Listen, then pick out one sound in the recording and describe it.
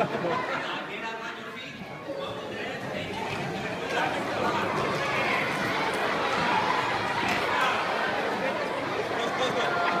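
A crowd of children chatter and shout in a large echoing hall.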